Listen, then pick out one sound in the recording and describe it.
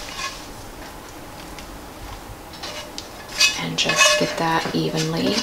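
A metal utensil scrapes food from a frying pan into a dish.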